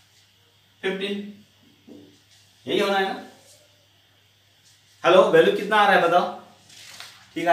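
A middle-aged man speaks calmly into a close microphone, in short phrases.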